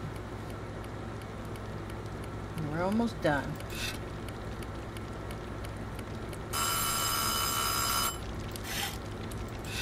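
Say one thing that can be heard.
A wood fire crackles in an oven.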